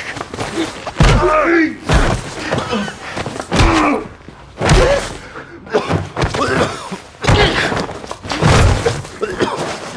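Blows thud heavily against a body.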